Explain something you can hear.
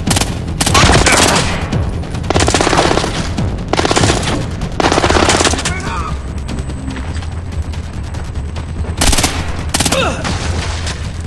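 Silenced gunshots fire in short bursts.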